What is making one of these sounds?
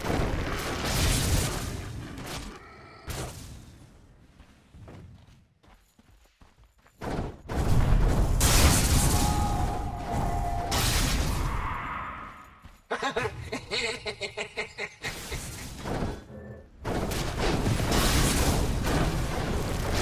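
Game spells crackle and blast in bursts.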